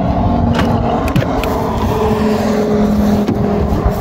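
A car door handle clicks and the door opens.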